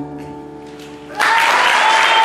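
A keyboard chord rings out and fades.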